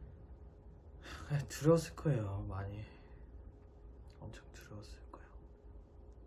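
A young man speaks quietly and sadly close by.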